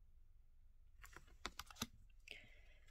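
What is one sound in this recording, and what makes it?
A playing card is set down with soft taps.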